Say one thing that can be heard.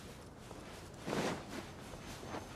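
A blade whooshes through the air with a burst.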